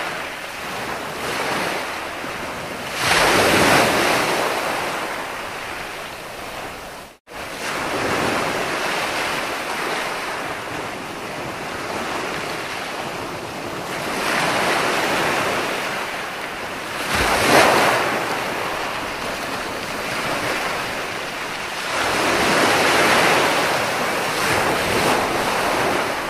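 Ocean waves break and wash up onto the shore in slow, rushing swells.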